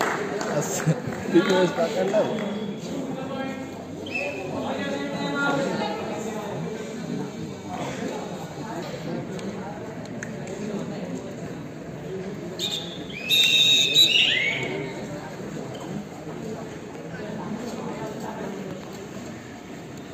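Young men shout and call out during play.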